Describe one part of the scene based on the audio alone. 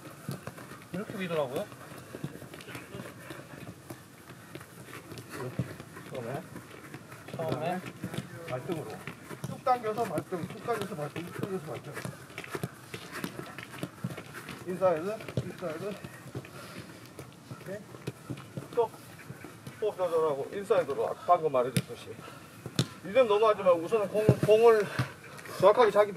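A man talks outdoors with animation, close by.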